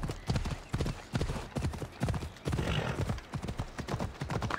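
Horse hooves gallop over dirt.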